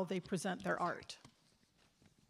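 A woman speaks loudly and briefly through a microphone in a large hall.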